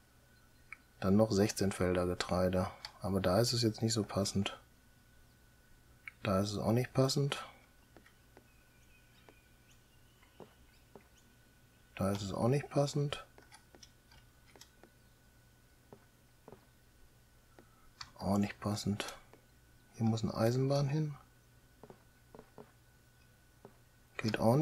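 A middle-aged man talks calmly into a close microphone, in short bursts with pauses.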